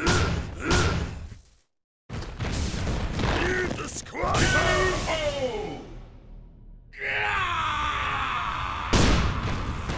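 Punches and blows land with heavy thuds.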